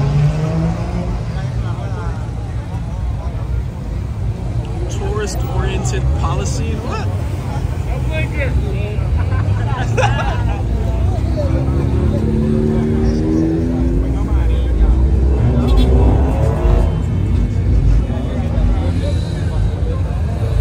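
A crowd of young men and women chatters and shouts outdoors.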